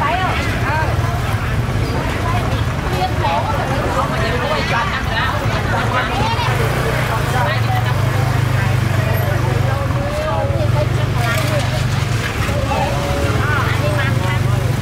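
A crowd of adult men and women chatter nearby, outdoors.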